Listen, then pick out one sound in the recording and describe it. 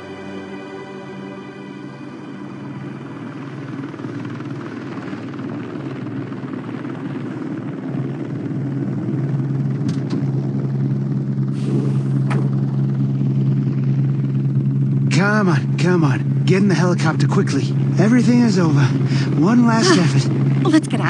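A helicopter's rotor thumps loudly and steadily overhead.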